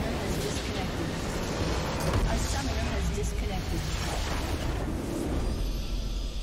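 Video game combat effects crash and boom loudly.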